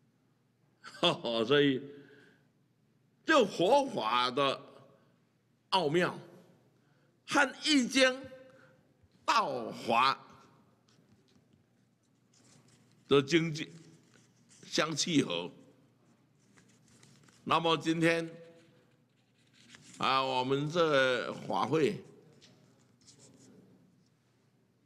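An elderly man speaks slowly into a microphone in short phrases with pauses.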